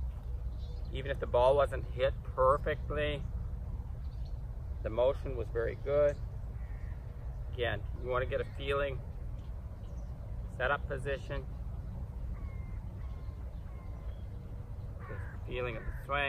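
A man speaks calmly and clearly into a nearby microphone.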